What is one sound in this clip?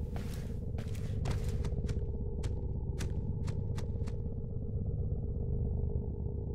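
An electric energy hum drones low and steady.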